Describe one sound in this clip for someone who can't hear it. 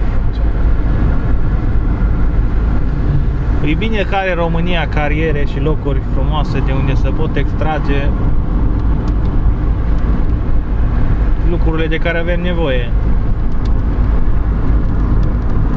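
A vehicle rumbles steadily while driving along a road.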